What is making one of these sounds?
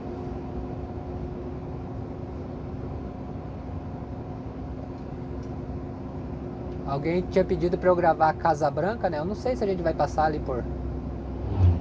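A vehicle engine drones steadily while driving along a road.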